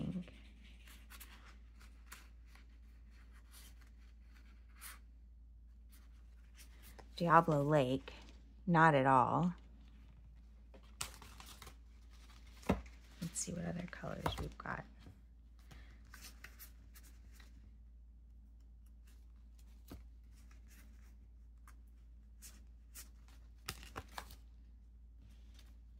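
Stiff paper cards on a metal ring rustle and click as they are handled.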